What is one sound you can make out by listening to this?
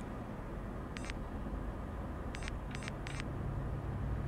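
Short soft menu clicks sound as a selection moves.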